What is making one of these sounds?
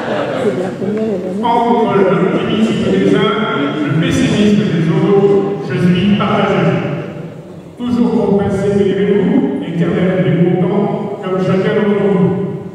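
A man speaks steadily through a microphone and loudspeakers in a large echoing hall.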